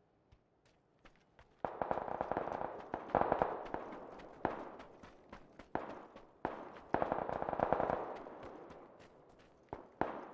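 Footsteps crunch quickly over sand and dirt.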